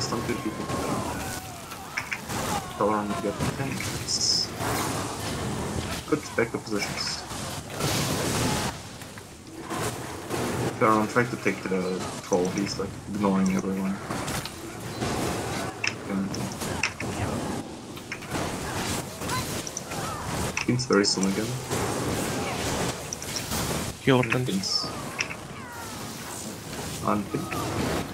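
Blasts of magic burst and boom.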